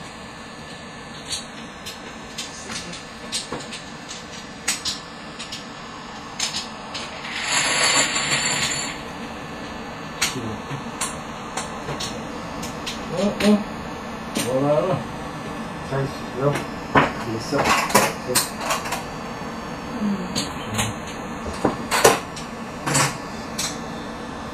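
Plastic tiles click and clack against each other on a table.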